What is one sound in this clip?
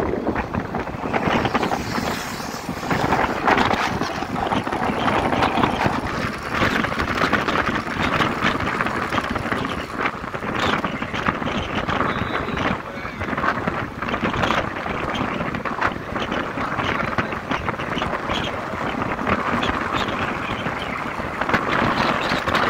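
Wind roars and buffets past a motorcycle rider at speed.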